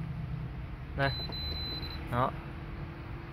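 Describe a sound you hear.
An electronic appliance beeps briefly as its buttons are pressed.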